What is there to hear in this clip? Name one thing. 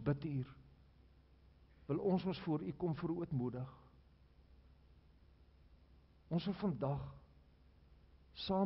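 An elderly man speaks slowly and calmly through a microphone in a large echoing hall, with long pauses.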